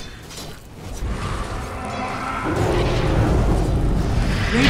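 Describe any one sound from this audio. A fiery blast roars loudly.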